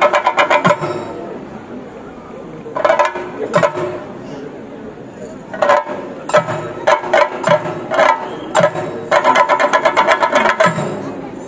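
Drummers beat loud, fast rhythms on drums outdoors.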